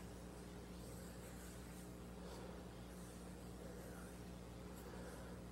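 Hands rub and glide softly over bare skin.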